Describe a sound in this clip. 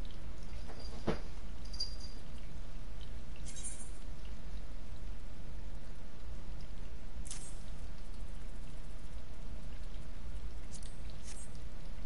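Short game menu blips sound now and then.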